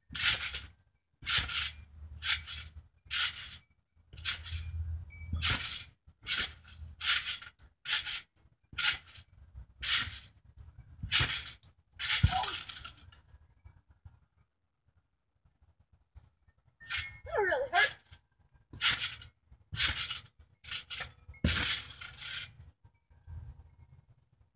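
Trampoline springs creak and rattle with each bounce.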